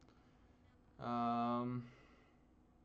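A man hums a long, thoughtful note close to a microphone.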